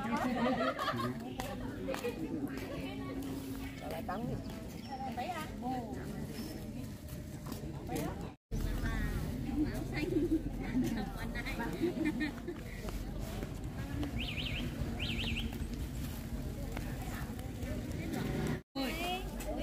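Elderly women talk nearby outdoors.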